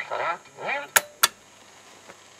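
Metal parts click sharply as hands handle them.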